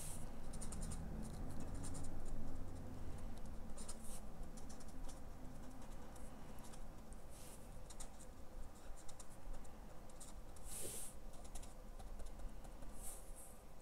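A marker tip dabs and scratches softly on paper.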